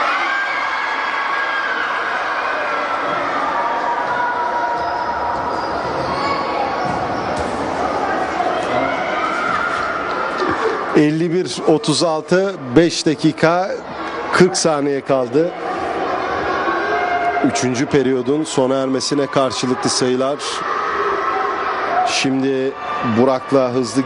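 A basketball bounces with dull thumps on a wooden floor.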